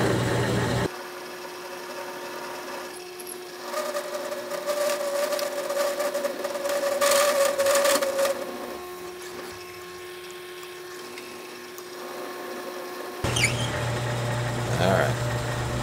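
Metal shavings scrape and grind as a drill bit cuts.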